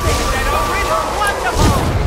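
An electric weapon crackles and buzzes.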